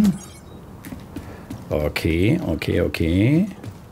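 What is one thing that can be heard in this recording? Footsteps clatter down metal stairs.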